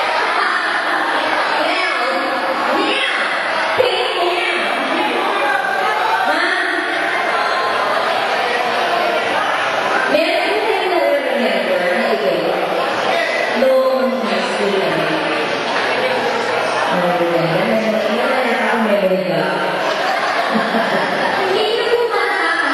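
A crowd of men and women chatter and talk over each other close by.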